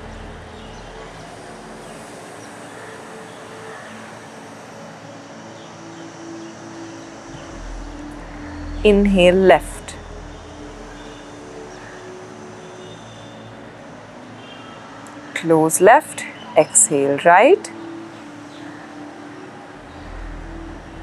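A young woman breathes slowly and deeply through her nose.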